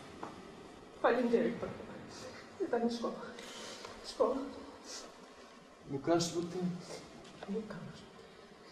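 A young woman speaks tearfully.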